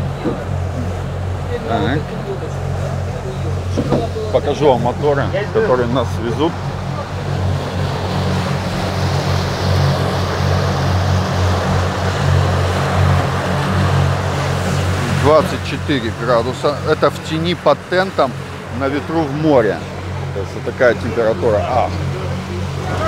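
Water rushes and churns behind a moving boat.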